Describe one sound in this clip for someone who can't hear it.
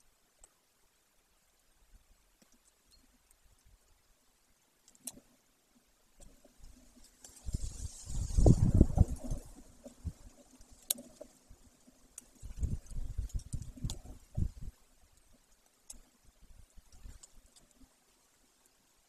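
A large bird tears and pulls at meat with its beak, with soft rustling.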